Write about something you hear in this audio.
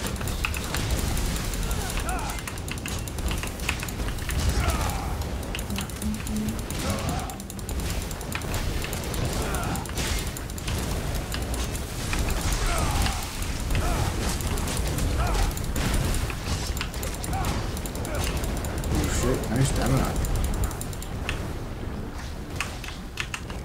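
Fire roars and crackles in bursts.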